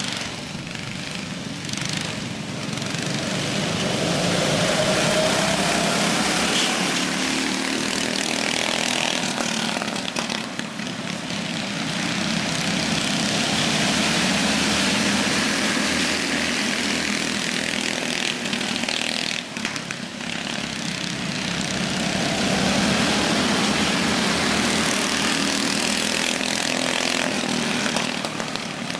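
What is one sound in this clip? Go-kart engines whine and buzz loudly as karts race past, swelling and fading.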